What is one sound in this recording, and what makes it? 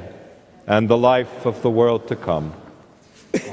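A man chants through a microphone in an echoing church.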